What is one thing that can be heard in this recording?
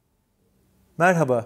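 A middle-aged man speaks calmly into a clip-on microphone, close by.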